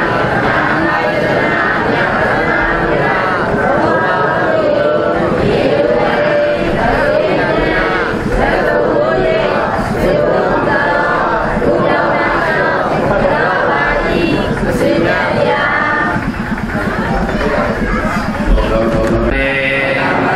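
A crowd chants together in unison.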